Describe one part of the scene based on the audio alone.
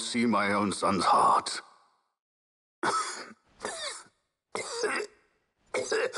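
An elderly man speaks slowly and gravely.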